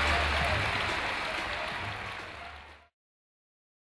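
A crowd murmurs and cheers in a large echoing arena, fading out.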